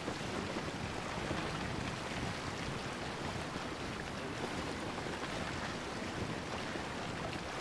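Water splashes and laps against a wooden boat's hull.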